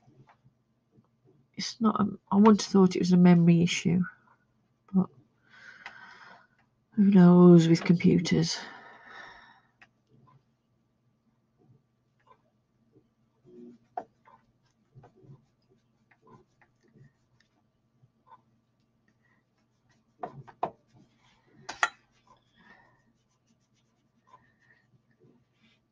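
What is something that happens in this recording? A brush scrubs softly on paper.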